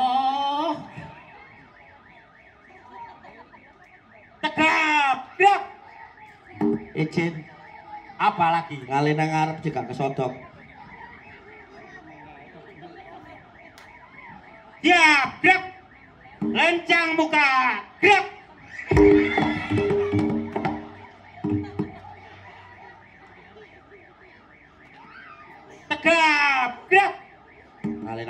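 A man talks animatedly through a loudspeaker.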